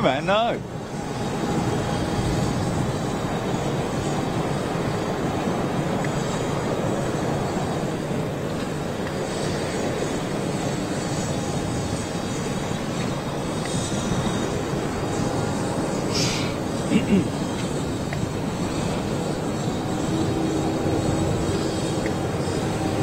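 A tug's engine rumbles steadily as it pushes a jet airliner back.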